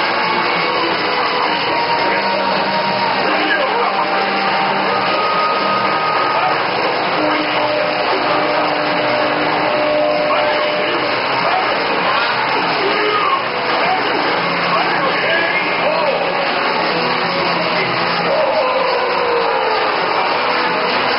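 Fighting game music, punches and blasts play loudly from an arcade machine.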